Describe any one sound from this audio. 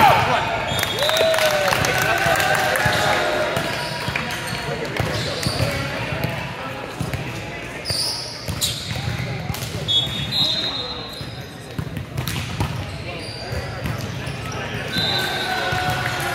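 Shoes squeak sharply on a hard court floor in a large echoing hall.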